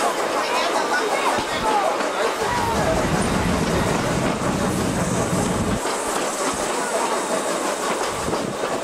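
A train rattles and clatters steadily along the tracks.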